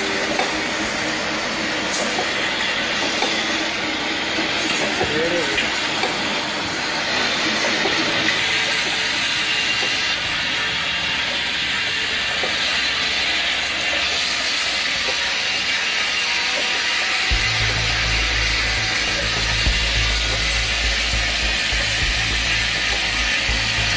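A bottling machine hums and clatters steadily.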